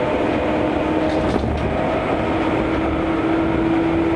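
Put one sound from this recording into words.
A passing train rushes by close outside.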